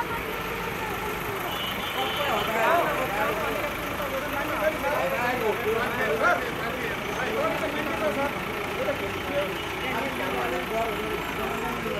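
A backhoe engine rumbles nearby.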